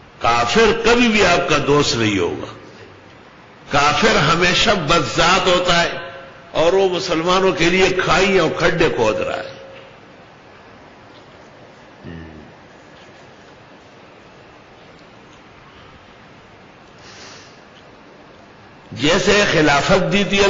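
An elderly man speaks through a microphone with animation, in bursts with long pauses.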